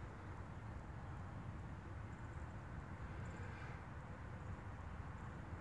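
A turtle's claws scrape softly on loose gravel.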